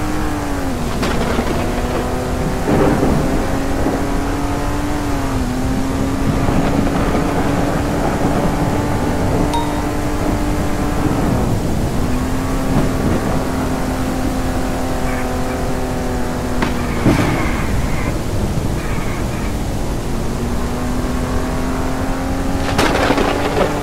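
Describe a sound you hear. Tyres hiss over a wet road.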